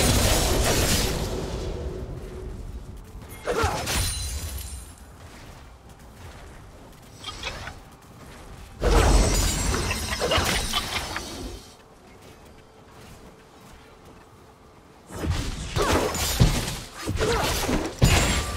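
Spell effects whoosh and blast in bursts.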